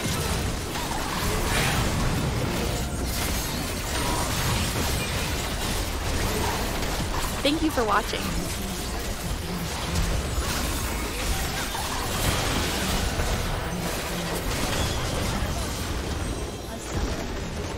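Spell blasts and hits crackle and boom in a game battle.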